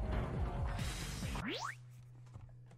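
Game music and sound effects play, then cut off.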